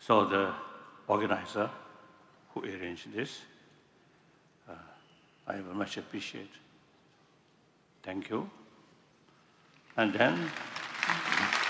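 An elderly man speaks slowly through a microphone, in short phrases with pauses.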